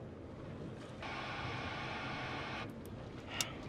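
A two-way radio hisses with static.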